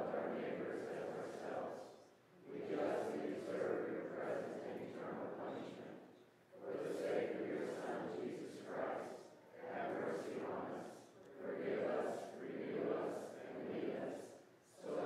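A woman reads aloud steadily through a microphone in an echoing hall.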